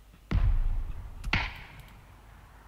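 A rifle fires two loud shots that echo away.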